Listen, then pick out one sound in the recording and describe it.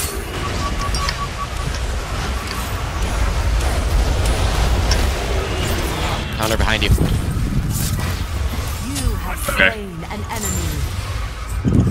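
Magic blasts whoosh and crackle in a fast fight.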